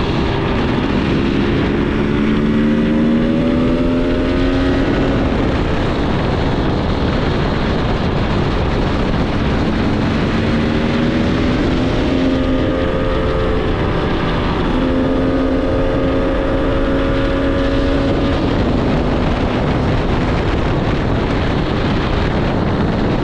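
Wind rushes loudly past.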